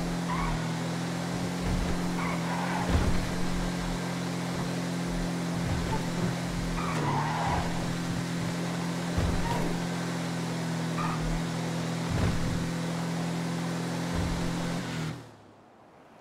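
A van engine drones steadily as it drives along a road.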